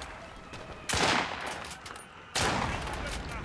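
A rifle fires sharp, booming shots.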